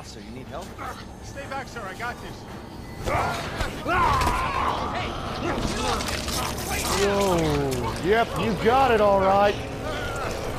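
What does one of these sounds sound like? A man groans and pleads weakly.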